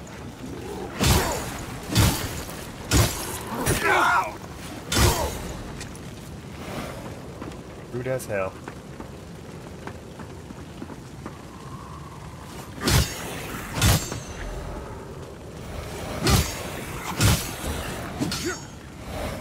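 Heavy weapon blows strike hard, in sudden bursts.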